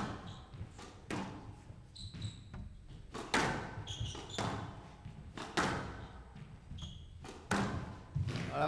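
A squash ball smacks hard off rackets and walls in a fast rally, ringing in an echoing court.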